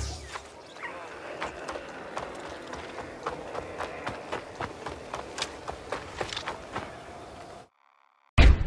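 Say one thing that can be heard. Footsteps crunch on dirt at a running pace.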